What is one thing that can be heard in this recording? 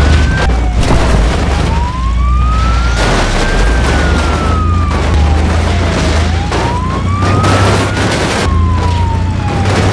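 A truck engine rumbles and revs.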